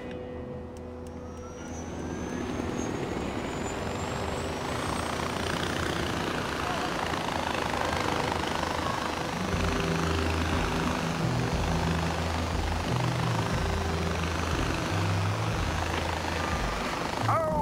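A zip line trolley whirs along a cable.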